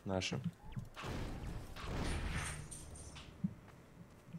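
A weapon fires with a crackling energy blast.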